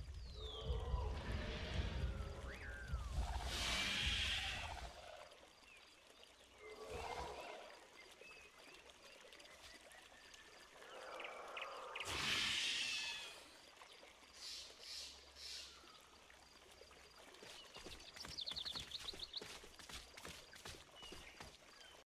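Small dinosaurs chirp and screech in the grass.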